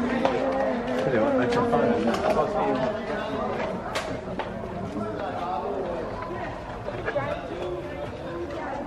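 A crowd of tourists chatters nearby outdoors.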